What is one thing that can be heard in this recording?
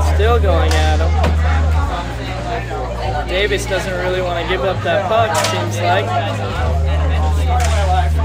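Hockey sticks clack against a ball and each other.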